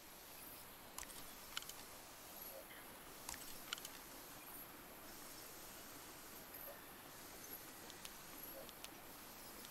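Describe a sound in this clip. Mechanical buttons click sharply now and then.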